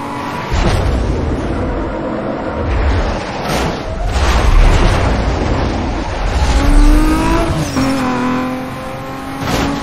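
A sports car engine roars at full throttle in a racing video game.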